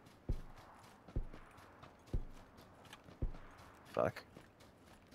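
Heavy footsteps thud through grass at a run.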